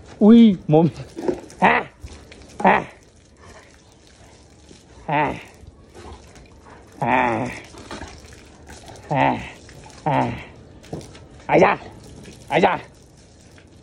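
A dog barks loudly and repeatedly close by.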